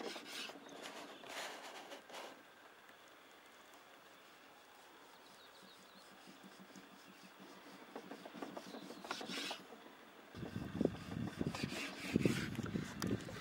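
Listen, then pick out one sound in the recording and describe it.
A knife slices through soft fat on a wooden board.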